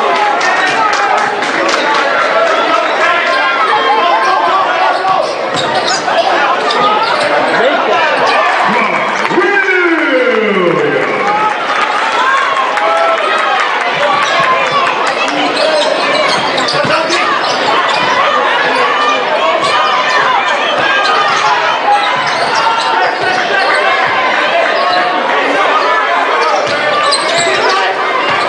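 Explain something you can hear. A large crowd murmurs and cheers throughout in an echoing gym.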